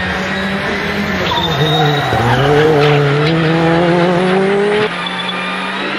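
A rally car speeds past outdoors with a roaring engine.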